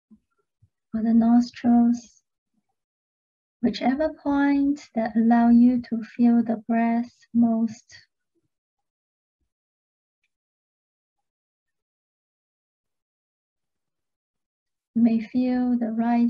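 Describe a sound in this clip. A young woman speaks calmly and softly into a close microphone, with pauses.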